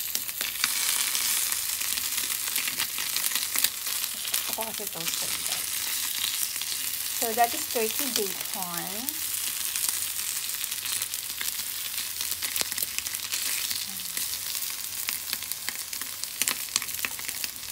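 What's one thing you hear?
Sausages and bacon sizzle and crackle loudly in a hot pan.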